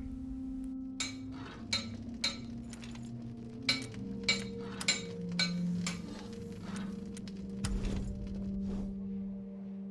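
A blacksmith's hammer rings on an anvil in steady blows.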